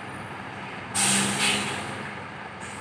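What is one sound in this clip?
A loud bus horn blares in short bursts.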